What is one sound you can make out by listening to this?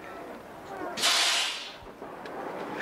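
Air brakes hiss sharply on a bus.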